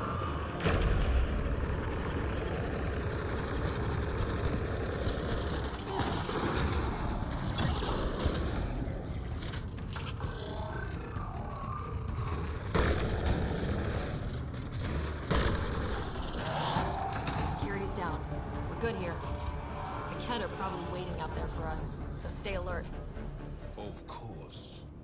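Rapid gunfire crackles and bangs close by.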